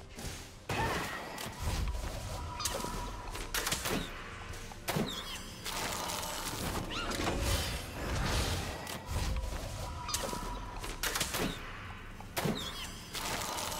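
Whooshing spell effects and sharp impacts burst in a fast-paced fight.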